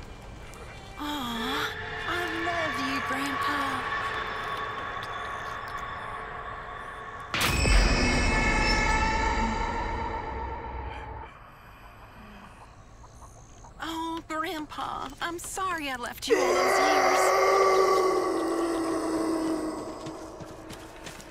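A young woman speaks softly and tenderly, close by.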